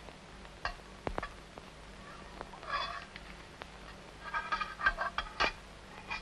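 A metal water pot clinks against the ground.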